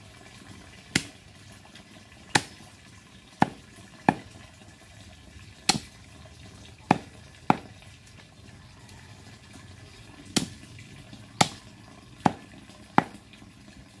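A knife chops sharply on a wooden block at uneven intervals.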